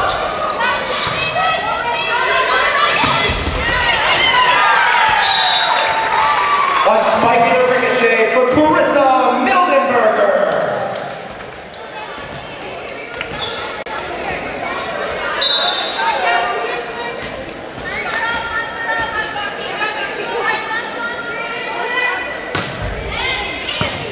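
Young women players shout and call out to each other on the court.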